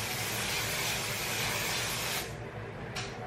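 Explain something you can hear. A spray can hisses in a long burst.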